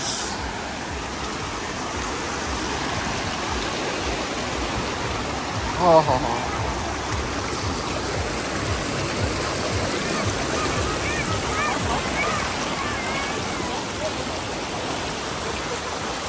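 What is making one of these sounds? Water rushes and splashes steadily over rocks close by.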